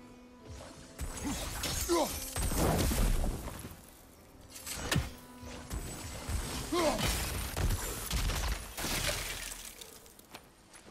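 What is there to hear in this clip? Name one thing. A magical blast bursts with a crackling whoosh.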